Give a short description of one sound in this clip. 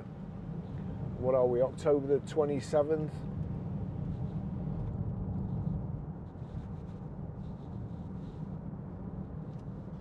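A car engine hums low and steadily while driving.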